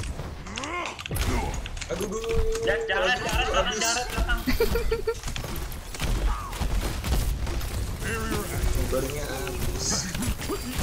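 Gunfire and game effects crackle and blast.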